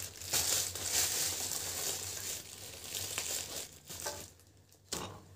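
A plastic wrapper crinkles and rustles loudly up close.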